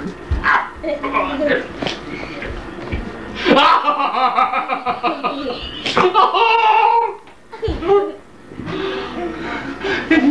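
A middle-aged man laughs heartily up close.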